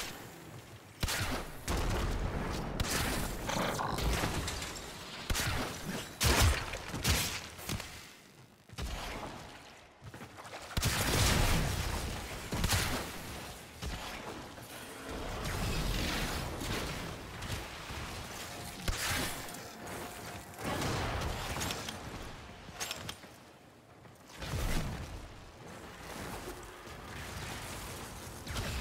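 Energy blasts crackle and explode.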